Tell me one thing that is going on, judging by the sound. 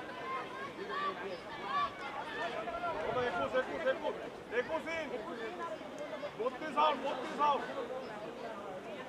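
A crowd of spectators cheers and chatters nearby.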